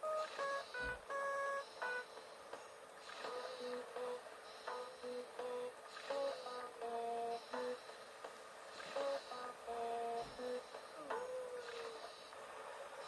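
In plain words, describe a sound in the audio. A game melody plays in short, bright electronic beeps.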